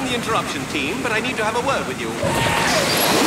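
A man speaks cheerfully over a headset radio.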